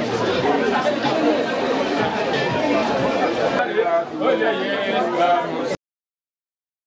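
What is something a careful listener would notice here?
A crowd of men and women chatter and talk over one another nearby.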